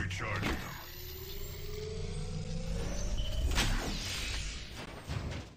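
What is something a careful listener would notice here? An electric charging hum rises and crackles.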